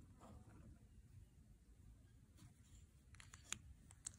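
Pens click and clatter together in a hand.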